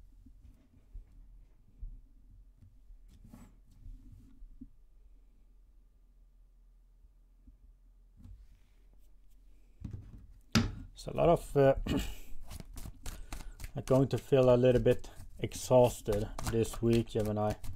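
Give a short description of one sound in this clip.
Cards slide and shuffle on a table.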